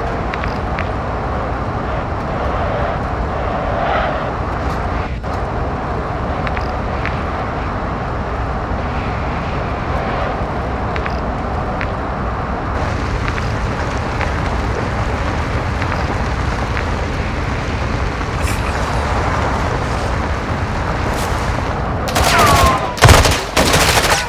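A truck engine rumbles steadily as it drives.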